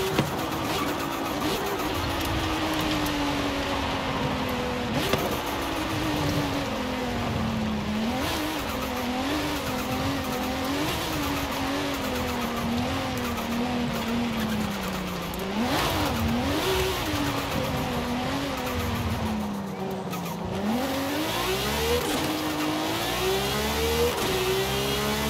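A sports car engine roars, revving up and down as it slows and speeds up.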